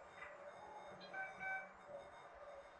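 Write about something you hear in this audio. A short electronic chime rings out.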